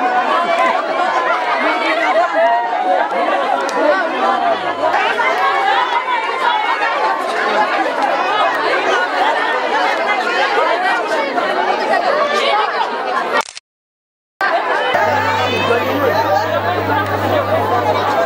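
Many women and children chatter loudly at once outdoors.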